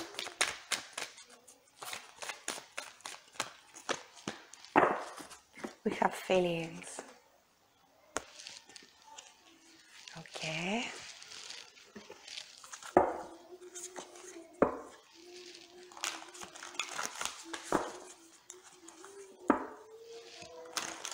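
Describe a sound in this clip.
Playing cards shuffle and flick with quick, light clicks.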